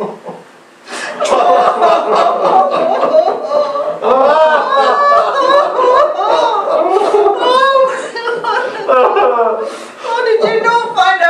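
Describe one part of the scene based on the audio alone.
Several elderly people wail and sob loudly together.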